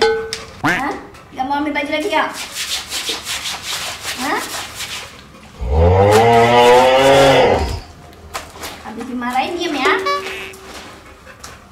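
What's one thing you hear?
A woman scrubs a wet cloth on rough ground.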